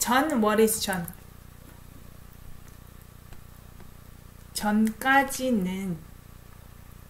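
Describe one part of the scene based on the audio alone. A young woman speaks expressively into a close microphone.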